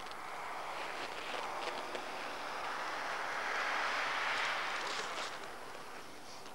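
Tyres hiss through snow.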